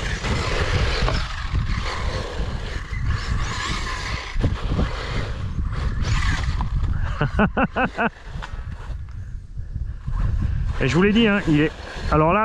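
A small remote-control toy car drives over a rough surface with a whirring motor.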